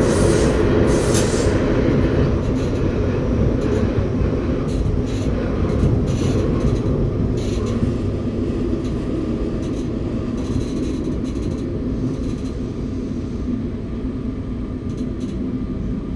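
An underground train rumbles loudly through a tunnel and slows as it pulls into a station.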